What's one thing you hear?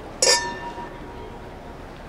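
Glasses clink together in a toast.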